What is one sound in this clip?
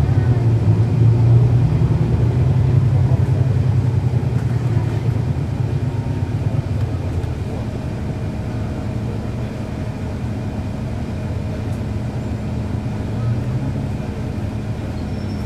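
A bus engine rumbles and idles steadily nearby, loudest at first and then easing off a little.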